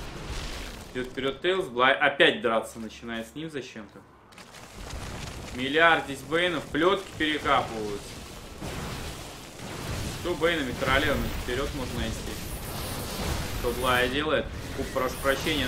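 A man commentates with animation into a close microphone.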